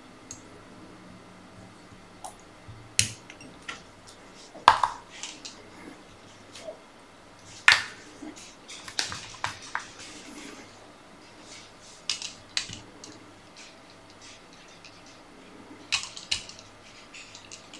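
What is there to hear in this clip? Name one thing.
Small clicks and rustles come from hands handling thread and tools close by.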